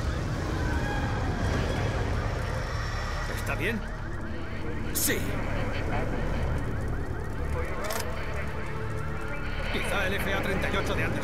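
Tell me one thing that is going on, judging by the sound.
Flames crackle and roar from a burning car.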